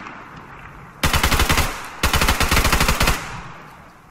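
Rapid automatic gunfire rattles in loud bursts.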